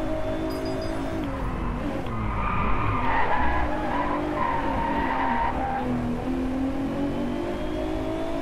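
A racing car engine revs loudly, rising and falling as it shifts gears.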